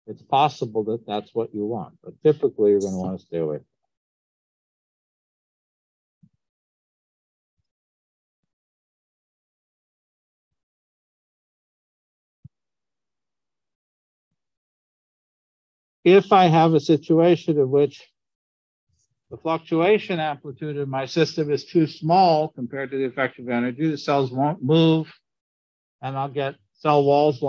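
A man lectures calmly over an online call, with pauses.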